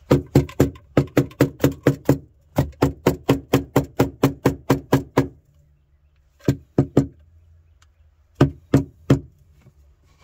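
A plastic pipe squeaks in quick, rhythmic bursts as it is twisted.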